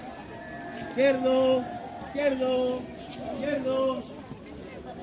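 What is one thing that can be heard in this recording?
A group of children chant loudly in unison, in short, drawn-out calls.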